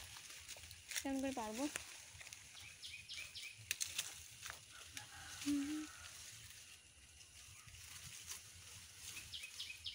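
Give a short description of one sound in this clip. Leaves rustle as branches are shaken and pulled.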